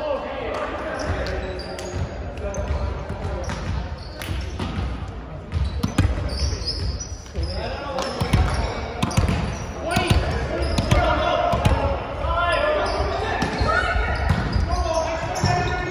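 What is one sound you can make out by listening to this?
A volleyball thumps off hands and arms now and then.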